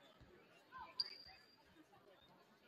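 A referee's whistle blows sharply and briefly.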